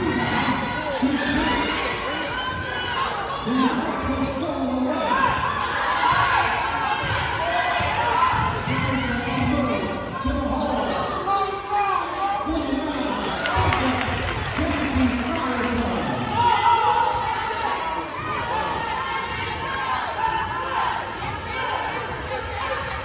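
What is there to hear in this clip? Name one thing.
A crowd of spectators talks and calls out in a large echoing gym.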